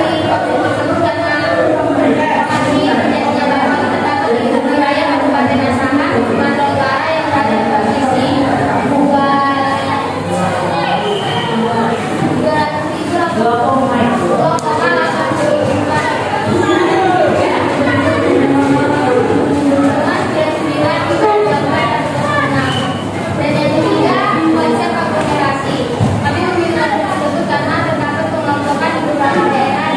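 Many teenage boys and girls talk over one another in a room with echo.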